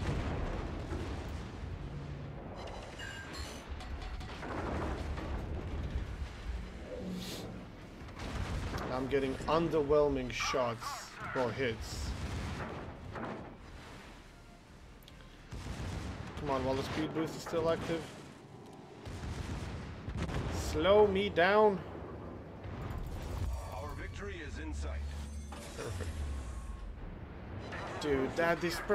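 Naval guns boom and shells explode in the water.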